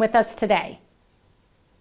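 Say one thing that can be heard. A middle-aged woman speaks brightly, close by.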